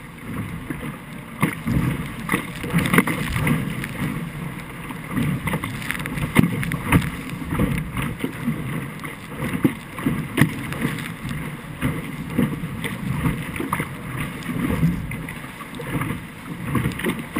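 Water splashes and rushes against the hull of a fast-moving boat.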